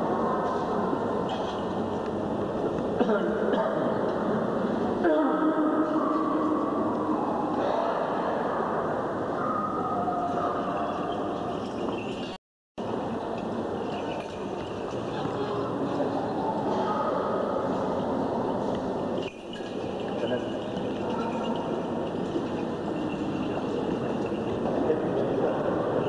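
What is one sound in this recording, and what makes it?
Several men chant a slow hymn together in an echoing hall.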